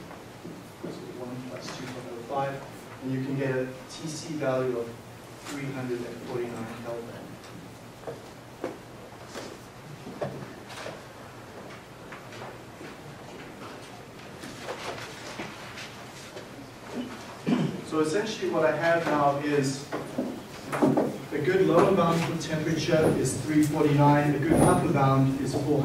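A man lectures in a large room, his voice echoing from the front.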